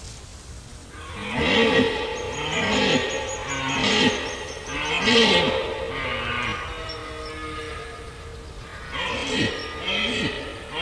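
A red deer stag bellows loudly in bursts.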